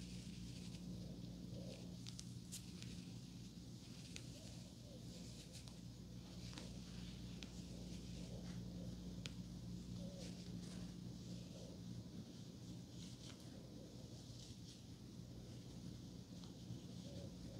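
Fingers rustle and scrape softly through hair close by.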